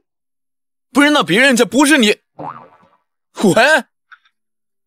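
A young man talks on a phone with animation.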